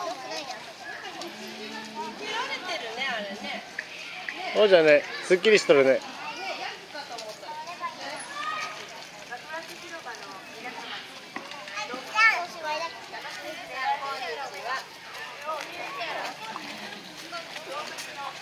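Young children chatter and call out nearby.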